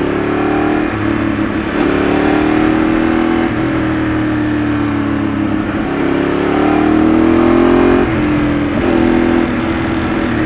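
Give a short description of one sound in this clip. A Ducati 848 V-twin sport bike rides through bends, its engine revs rising and falling through gear changes.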